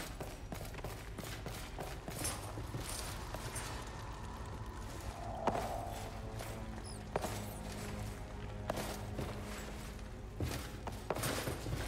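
Footsteps run over a hard floor.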